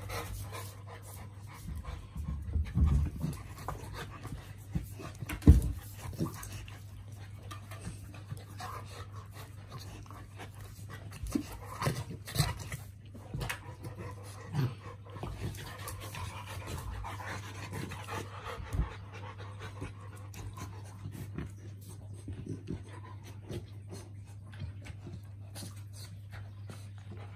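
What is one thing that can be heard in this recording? Dog paws scuffle and thump on a carpeted floor.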